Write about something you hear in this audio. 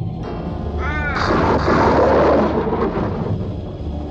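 A crow caws loudly.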